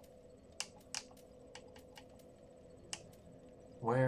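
Menu selection clicks tick sharply.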